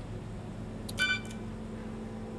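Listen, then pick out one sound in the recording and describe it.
An electronic beep sounds as a lock switches open.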